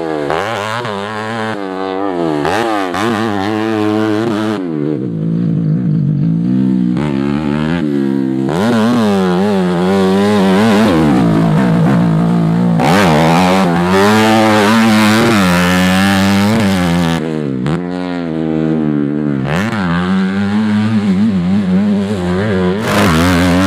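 A dirt bike engine revs up and down, rising and falling in pitch.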